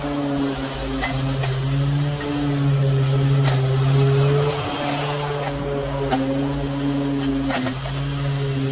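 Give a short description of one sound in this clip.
Grass and twigs tick against a mower's blade.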